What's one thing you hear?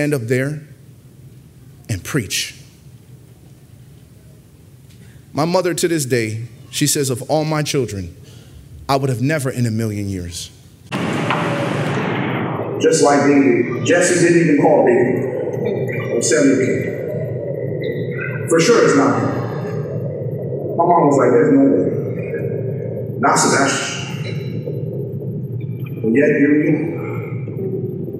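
A man speaks with animation into a microphone, with pauses.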